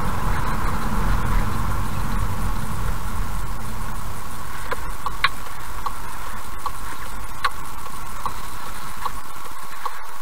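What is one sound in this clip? A car drives along a road with a low rumble that fades as it slows to a stop.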